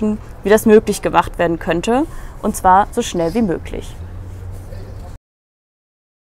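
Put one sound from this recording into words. A young woman reads aloud calmly into a clip-on microphone.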